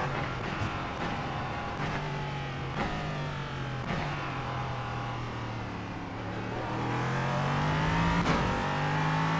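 A racing car's gearbox clunks sharply as it changes gear.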